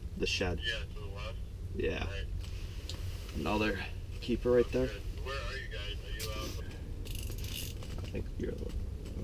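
Two young men talk casually nearby.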